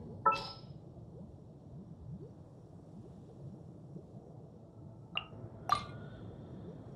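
Short bright menu chimes ring out now and then.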